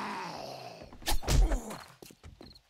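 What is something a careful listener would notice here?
A knife strikes flesh with a heavy wet thud.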